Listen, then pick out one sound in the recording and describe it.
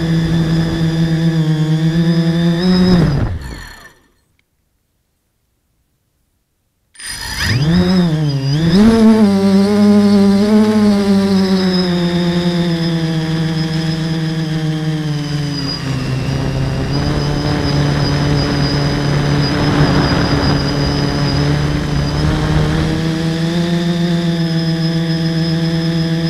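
Drone motors whine loudly close by.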